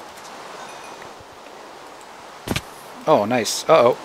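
A pickaxe chips at stone.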